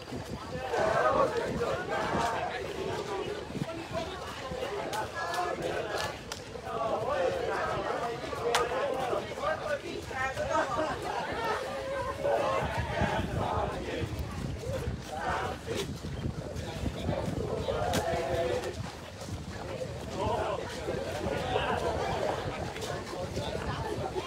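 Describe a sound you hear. Many running feet patter on a paved path.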